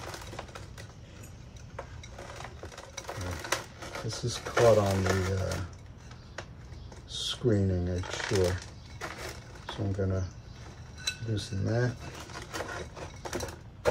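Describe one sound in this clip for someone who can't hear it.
A plastic pot scrapes and taps.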